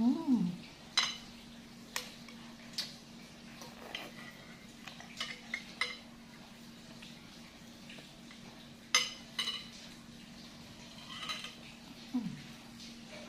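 Metal forks and spoons clink against a glass bowl.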